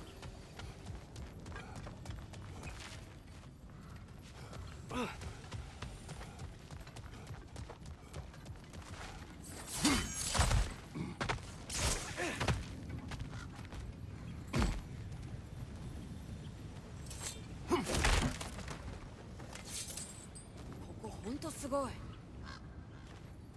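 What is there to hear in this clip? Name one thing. Heavy footsteps thud on stone and gravel.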